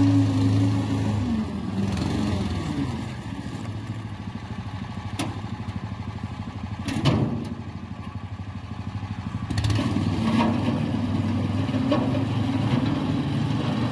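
A homemade tracked mini tractor with a small petrol engine drives, the engine chugging.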